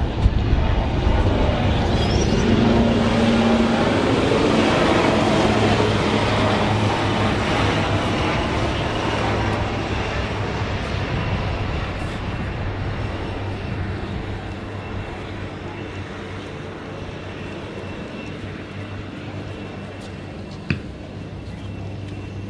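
Wind rushes and buffets outdoors, slowly easing off.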